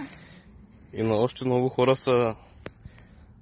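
A boy talks nearby, outdoors.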